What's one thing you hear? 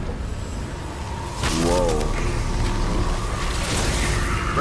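An electric charge crackles and buzzes loudly.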